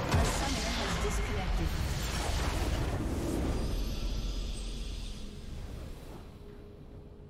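A large magical explosion booms and crackles, then rumbles away.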